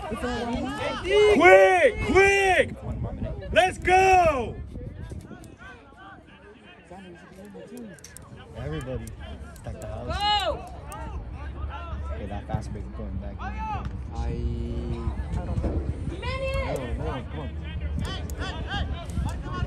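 Men and women in a nearby crowd shout and cheer loudly.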